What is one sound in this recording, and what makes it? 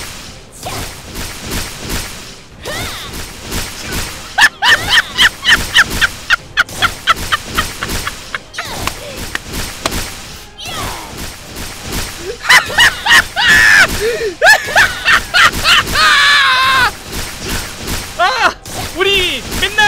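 Rapid electronic shots and hit effects crackle in quick bursts.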